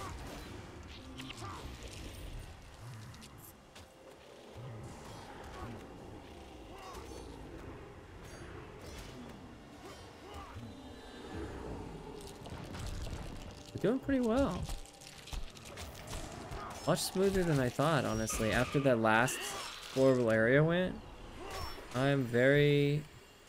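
Magic spells whoosh and strike during a fight.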